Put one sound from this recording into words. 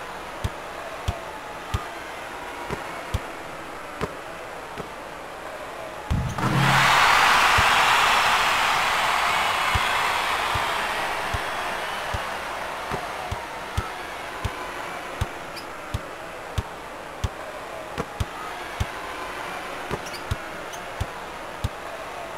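A basketball bounces in a steady dribble.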